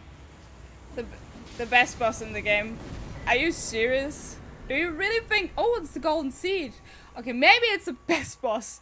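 A young woman speaks excitedly into a close microphone.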